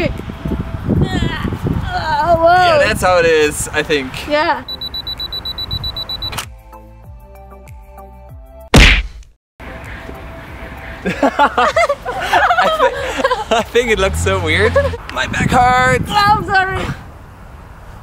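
A young woman laughs and shrieks close by.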